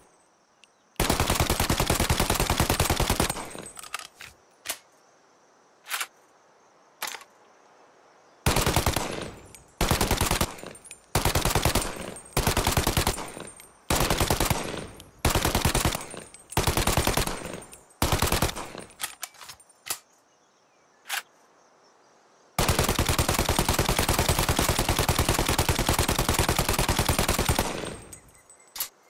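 A submachine gun fires rapid bursts outdoors.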